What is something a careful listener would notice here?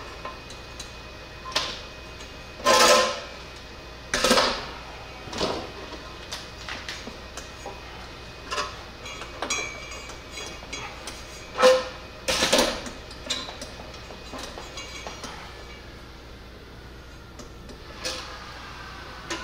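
Metal parts knock and clank together.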